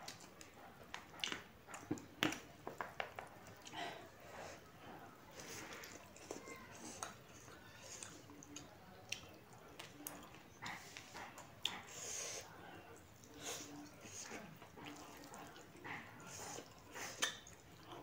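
Fingers squish and rustle through food on a plate.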